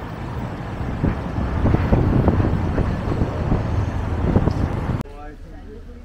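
A bus engine rumbles loudly close by as it pulls past.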